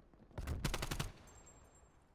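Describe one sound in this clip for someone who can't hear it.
Rapid gunshots fire close by.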